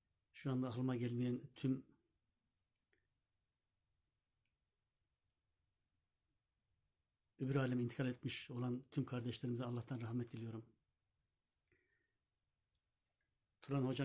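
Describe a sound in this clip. An older man speaks calmly close to the microphone, with pauses.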